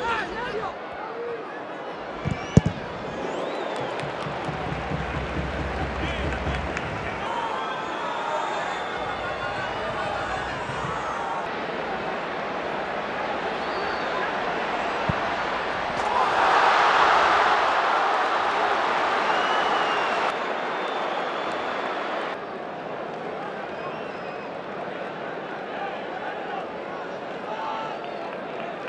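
A large stadium crowd murmurs and chants steadily.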